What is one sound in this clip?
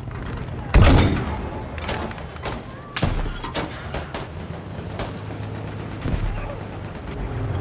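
Gunfire cracks in sharp bursts.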